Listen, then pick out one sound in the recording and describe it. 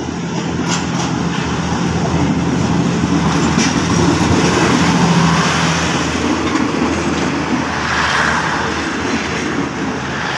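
Train wheels rumble and clatter over the rails close by.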